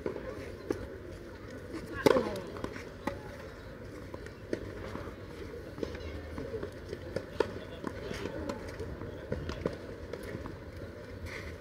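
Tennis balls bounce on a clay court with soft thuds.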